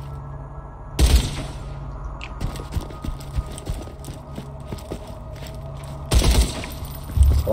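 Gunshots bang.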